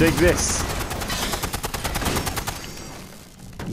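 An electric weapon crackles and buzzes rapidly.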